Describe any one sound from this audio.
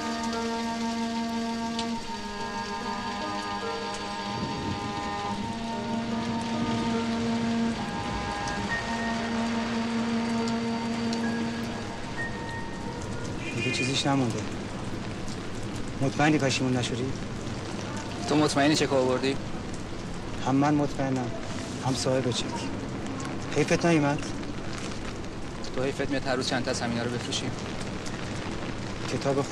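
Light rain patters steadily on an umbrella.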